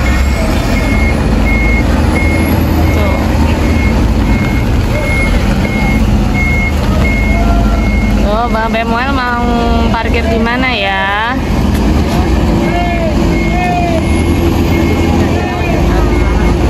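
Large bus engines rumble steadily nearby.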